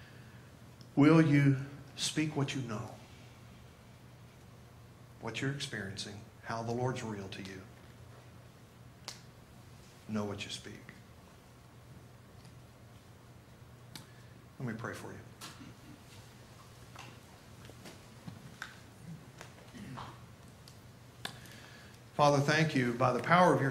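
A man speaks through a microphone in a large hall, in short bursts with long pauses.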